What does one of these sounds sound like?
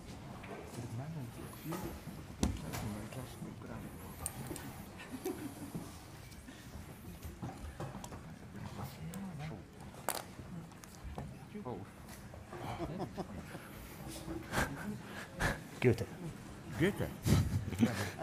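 A crowd murmurs softly in a large hall.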